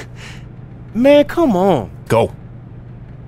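A young man protests with a drawn-out voice.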